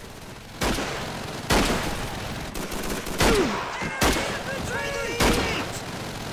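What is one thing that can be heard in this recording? Gunshots crack loudly in quick bursts.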